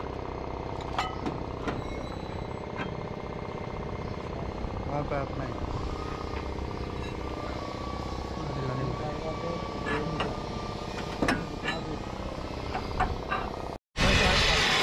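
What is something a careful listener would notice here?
Metal parts clank and knock against a steel frame.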